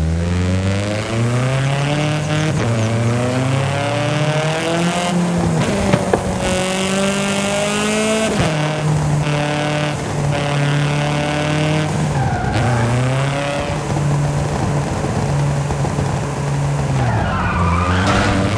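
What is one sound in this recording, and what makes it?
A car engine revs up and down through gear changes.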